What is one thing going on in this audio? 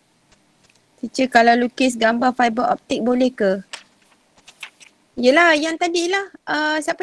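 A woman speaks calmly through an online call microphone.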